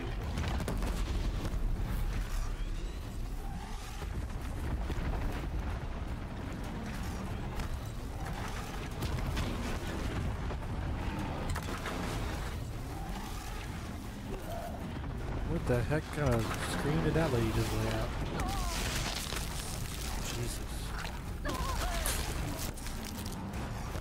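Game explosions and combat effects boom and crackle.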